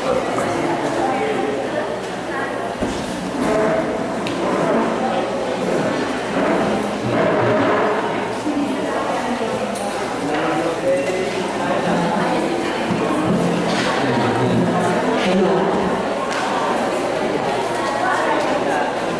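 A group of women and men sing together in a hall with a light echo.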